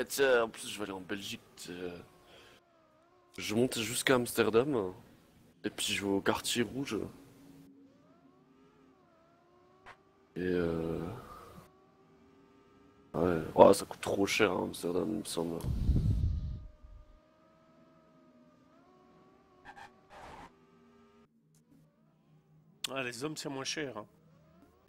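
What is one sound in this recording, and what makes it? A race car engine whines and revs up and down.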